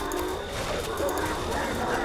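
Electric magic crackles and zaps.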